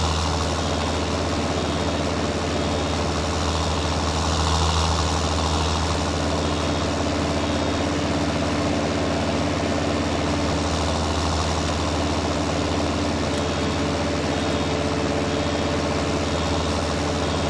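A baler whirs and rattles as it rolls a bale.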